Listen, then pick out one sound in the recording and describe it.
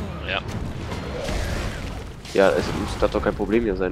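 A fiery spell bursts with a loud roar.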